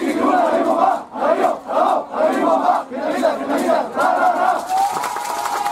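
A group of young men chants loudly together in rhythm, outdoors.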